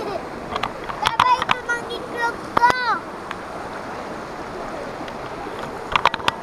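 A stream of water rushes and splashes over rocks nearby.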